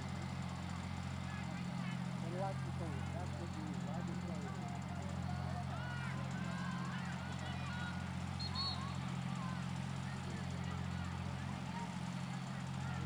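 Young women shout and call out across an outdoor field in the distance.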